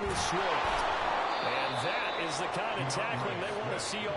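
Football players collide with a heavy thud.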